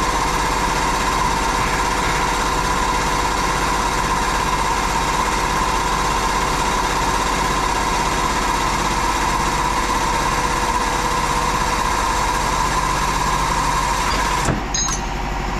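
A hydraulic press is pumped by hand with rhythmic creaking strokes.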